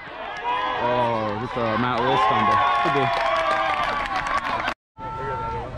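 Young men and women shout and cheer close by, outdoors.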